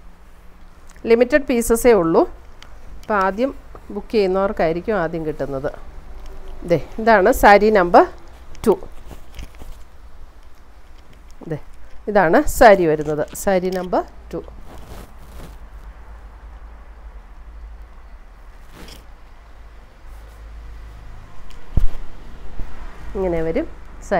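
A middle-aged woman speaks calmly and close up into a clip-on microphone.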